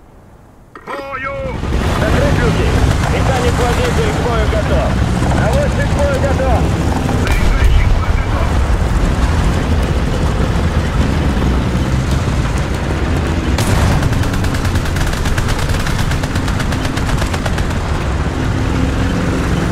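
A tank engine rumbles loudly and steadily.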